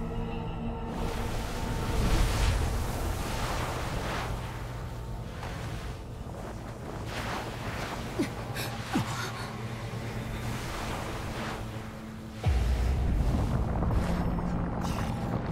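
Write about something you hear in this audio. Electric energy crackles and hisses in loud bursts.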